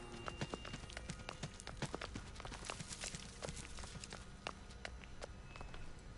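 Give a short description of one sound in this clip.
Footsteps rustle quickly through dense plants.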